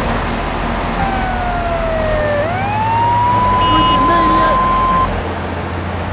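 A fire engine siren wails, rising and holding high.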